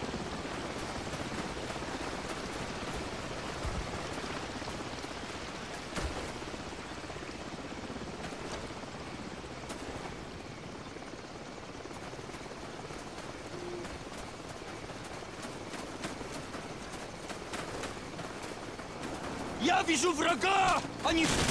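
Rain falls steadily outdoors in wind.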